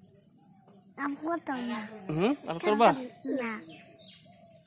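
A young child talks loudly and eagerly close by.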